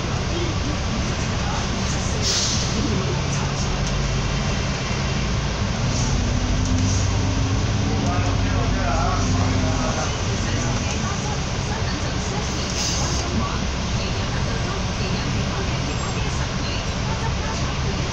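A bus engine rumbles and hums steadily as the bus drives along a road.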